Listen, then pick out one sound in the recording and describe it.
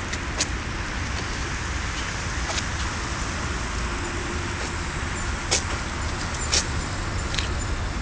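Wind rustles through palm fronds.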